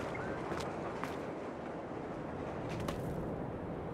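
Footsteps tap on hard ground.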